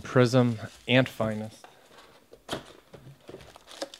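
Paper and plastic packaging rustles.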